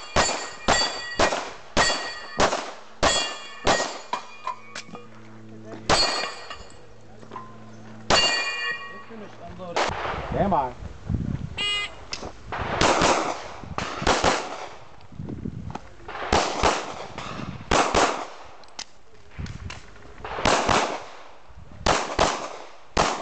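Pistol shots ring out in quick bursts outdoors.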